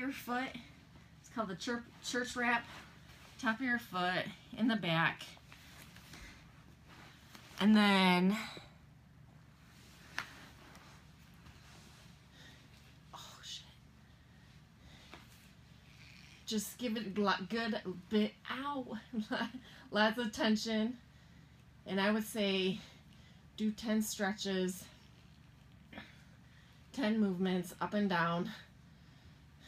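A woman talks calmly, close by.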